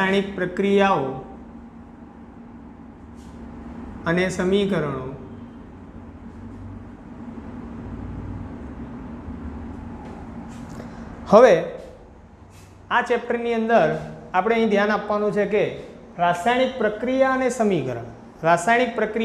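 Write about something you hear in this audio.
A young man speaks calmly to the room.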